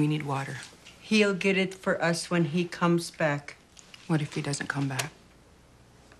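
An elderly woman speaks softly.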